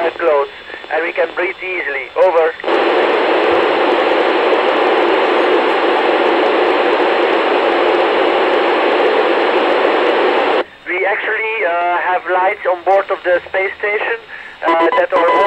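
A man speaks calmly over a crackly radio.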